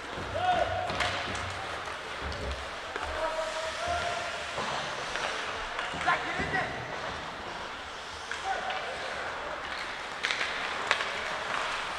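Hockey sticks clack against a puck now and then.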